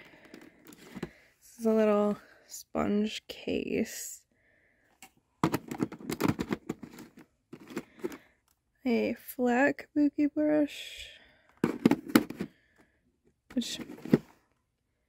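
Plastic packaging crinkles and taps as hands handle it.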